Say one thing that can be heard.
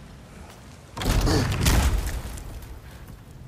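A heavy wooden door creaks and scrapes open.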